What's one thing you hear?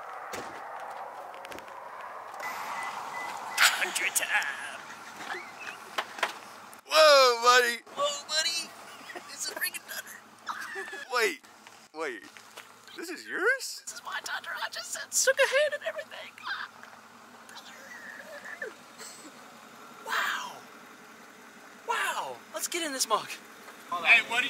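A young man talks excitedly and laughs close by.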